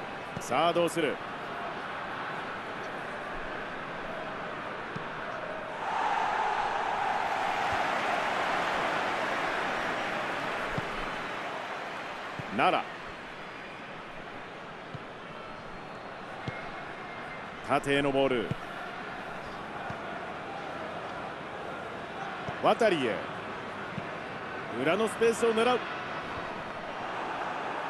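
A stadium crowd roars steadily, swelling for a while and then settling.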